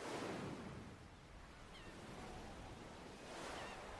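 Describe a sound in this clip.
Small waves wash gently over rocks.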